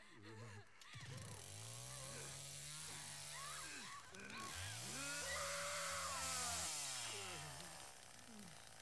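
A chainsaw revs loudly.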